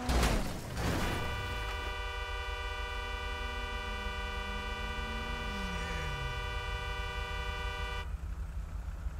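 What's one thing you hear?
A car horn blares steadily, then stops.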